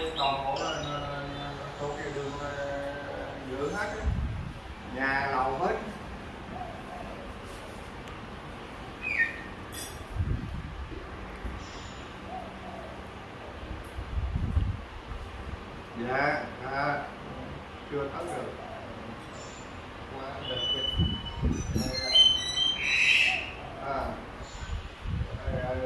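An elderly man talks on a phone nearby, calmly and in bursts.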